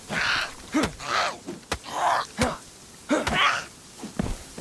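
A woman snarls and shrieks close by.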